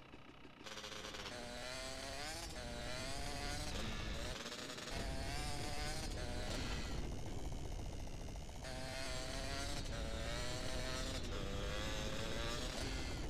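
A motorbike engine revs and drones steadily.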